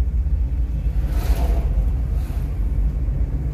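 A truck passes close by with a brief whoosh.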